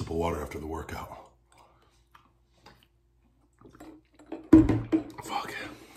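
A man gulps down water from a bottle.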